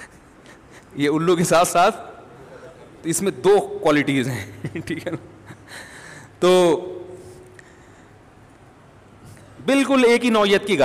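A middle-aged man speaks with animation into a close microphone, pausing between phrases.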